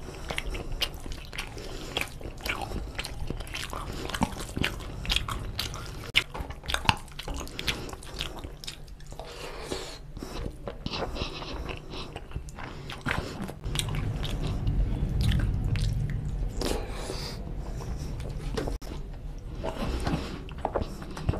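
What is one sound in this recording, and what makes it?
Fingers squish and mix soft rice and gravy close to a microphone.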